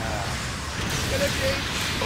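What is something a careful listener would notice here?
An explosion bursts with a crackle of electricity.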